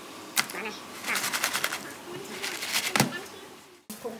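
Crab shells clatter against each other in a plastic bowl.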